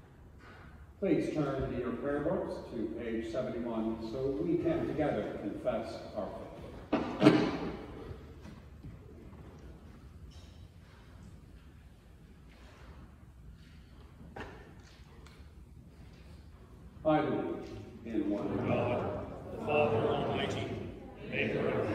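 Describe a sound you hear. A choir sings together in a large echoing hall.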